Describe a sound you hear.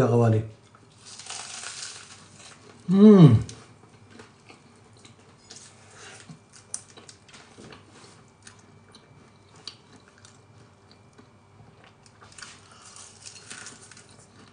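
A man chews and crunches food close by.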